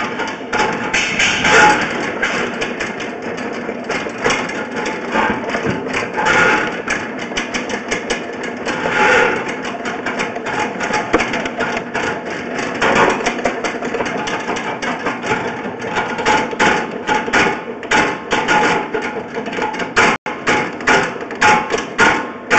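A probe scrapes and rustles against loose earth.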